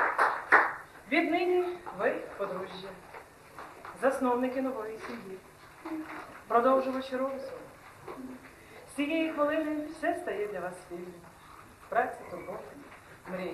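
A woman speaks calmly and formally nearby.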